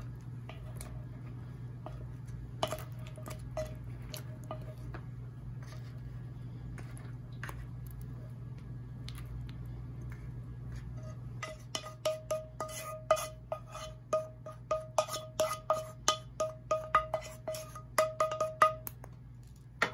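A wooden spoon scrapes saucy chicken wings out of a bowl.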